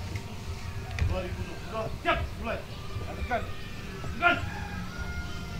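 A man shouts commands loudly outdoors.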